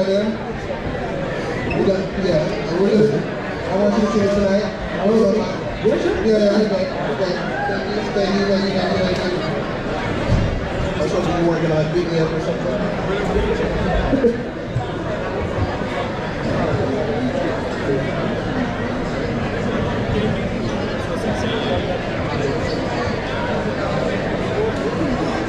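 A drummer plays a drum kit.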